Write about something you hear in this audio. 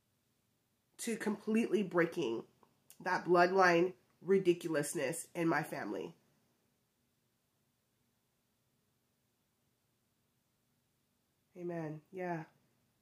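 A woman talks calmly and close by, with pauses.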